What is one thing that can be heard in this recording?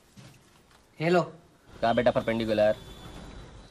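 A young man talks on a phone.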